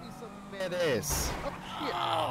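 A car crashes with a sudden thud.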